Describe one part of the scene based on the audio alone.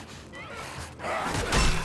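A creature snarls loudly close by.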